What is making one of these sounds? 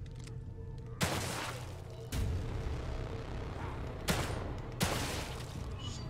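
A pistol fires loud single shots.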